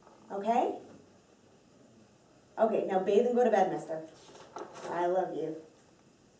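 A woman speaks calmly into a phone nearby, in short phrases.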